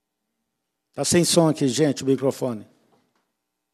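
An elderly man speaks loudly into a microphone.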